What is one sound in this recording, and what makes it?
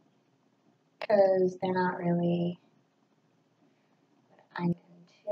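A young woman speaks close by, calmly.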